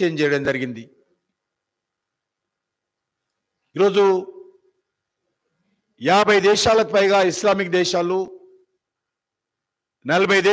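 A man speaks into a microphone in short, forceful bursts with long pauses.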